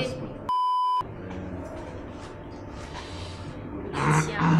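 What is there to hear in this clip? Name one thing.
A young woman talks with animation nearby.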